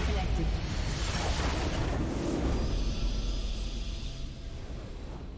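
A magical crystal explodes with a loud roaring burst that slowly fades.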